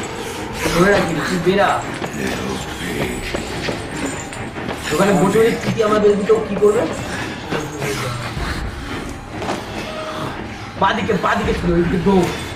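Young men exclaim and talk excitedly close to a microphone.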